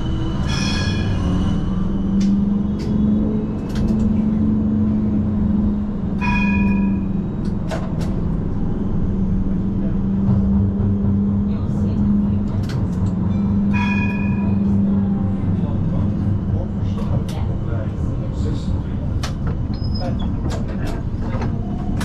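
A tram rumbles and hums steadily as it rolls along.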